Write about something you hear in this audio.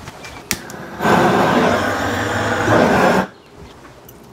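A blowtorch roars with a steady rushing flame.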